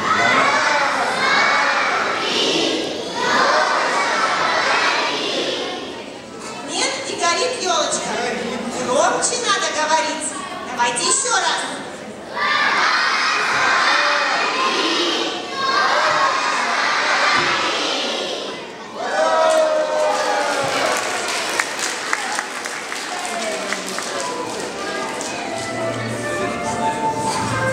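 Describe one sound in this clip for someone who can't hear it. A young woman speaks with animation into a microphone, heard over loudspeakers in an echoing hall.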